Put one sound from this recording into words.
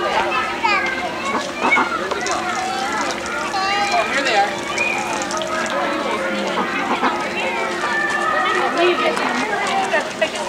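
Young children chatter and call out close by.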